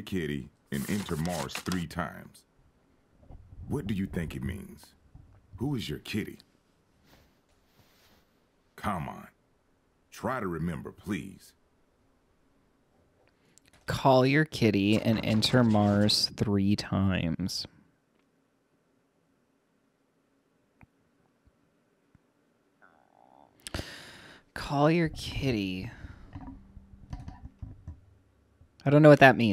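A young man talks into a close microphone in bursts, with pauses between.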